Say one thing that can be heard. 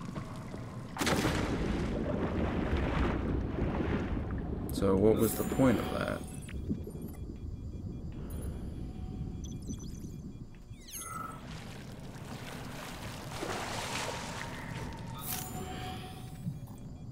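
Water rushes and splashes loudly.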